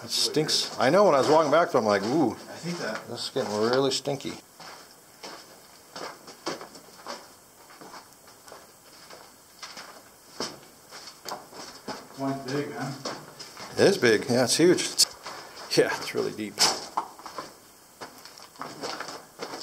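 Footsteps crunch on loose gravel and rock.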